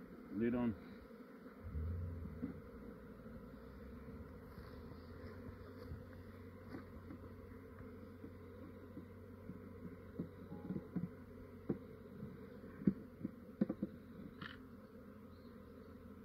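Honey bees hum and buzz around an open hive.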